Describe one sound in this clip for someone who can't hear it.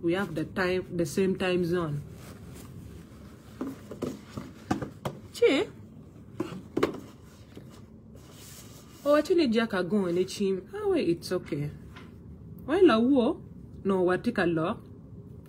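Tissue paper crinkles and rustles in hands.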